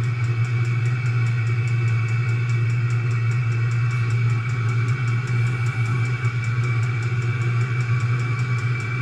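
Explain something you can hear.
A heater's fan hums steadily.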